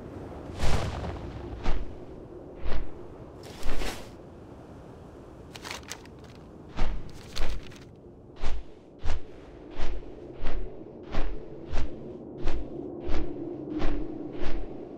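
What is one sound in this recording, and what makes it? Large wings flap in repeated heavy whooshes.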